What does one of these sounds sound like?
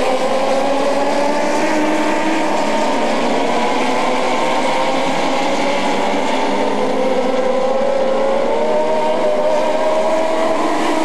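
A pack of dwarf cars races around an asphalt oval at full throttle, engines droning.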